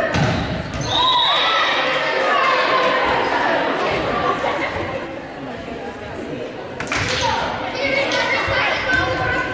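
Players shout and call out to each other in a large echoing gym.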